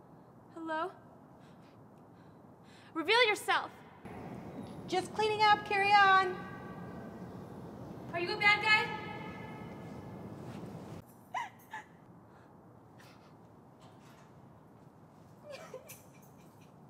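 A young woman speaks emotionally, close by.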